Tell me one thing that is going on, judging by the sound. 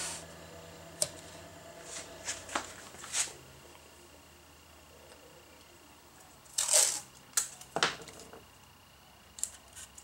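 Wooden pieces knock and clatter on a table.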